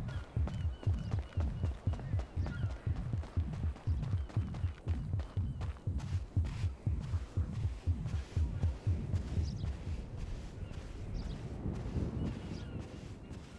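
Footsteps thud quickly on a dirt path.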